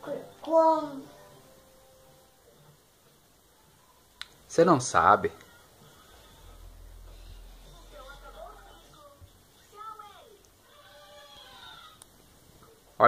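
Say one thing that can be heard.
A cartoon plays from a television with voices and music.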